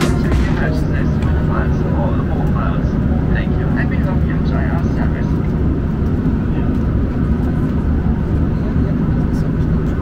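A paper card rustles in a hand.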